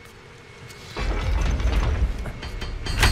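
Feet clatter on a metal ladder.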